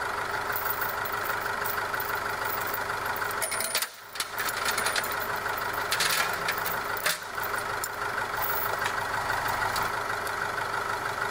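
A tractor engine idles steadily close by.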